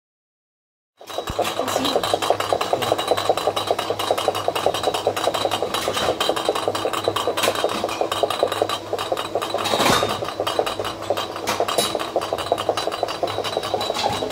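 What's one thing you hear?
A glass bottle spins on a conveyor belt, rattling rapidly.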